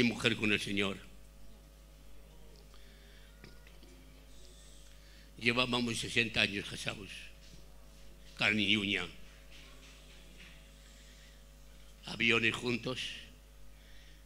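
An elderly man speaks slowly into a microphone, in short phrases with long pauses.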